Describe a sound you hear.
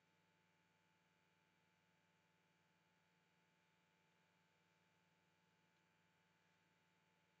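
An electric underground train hums while standing at a platform.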